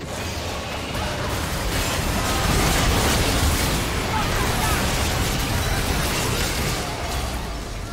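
Hits and blasts clash rapidly in a game fight.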